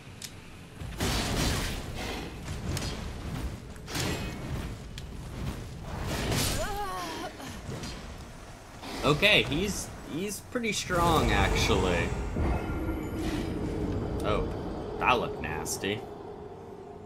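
Swords clash and slash in a fierce fight.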